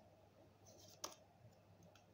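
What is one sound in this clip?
A card is laid down with a soft tap.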